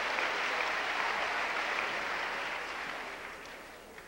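A man speaks calmly, heard from a distance in an echoing room.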